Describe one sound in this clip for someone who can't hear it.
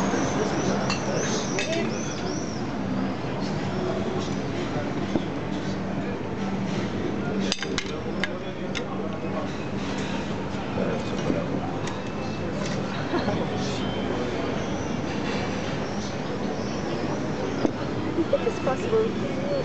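Several adults chat and talk over each other close by, outdoors.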